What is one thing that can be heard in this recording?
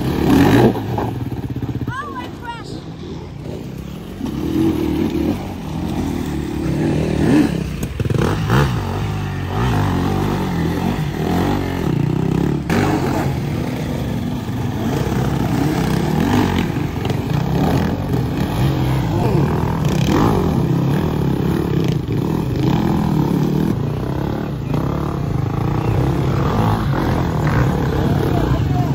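Dirt bike engines rev and sputter close by.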